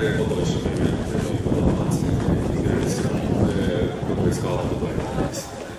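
A man speaks calmly into a microphone, heard through loudspeakers in an open space.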